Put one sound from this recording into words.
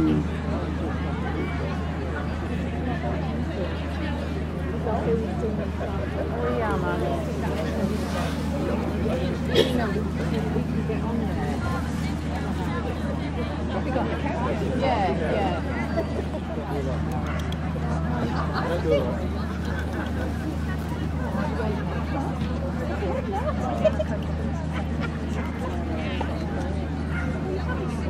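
A crowd of adults murmurs and chatters outdoors.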